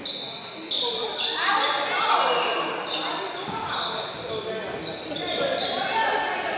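Voices of players and spectators murmur and call out in a large echoing gym.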